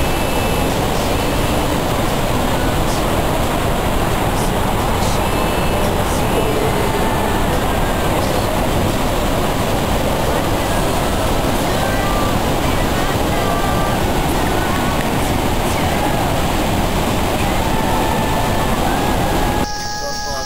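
A waterfall roars loudly and steadily nearby.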